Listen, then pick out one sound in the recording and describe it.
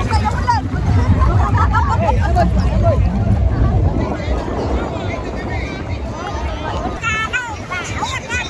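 Water splashes around people wading in the sea.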